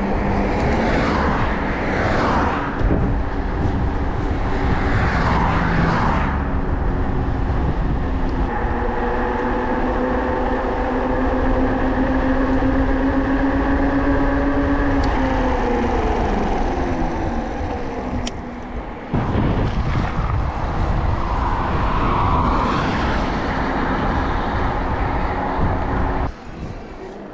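Wind buffets the microphone steadily outdoors.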